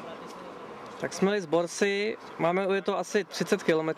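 A man talks loudly close by outdoors.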